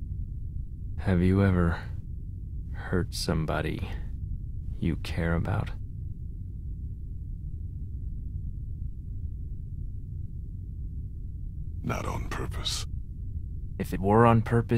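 A man speaks quietly and sadly, close by.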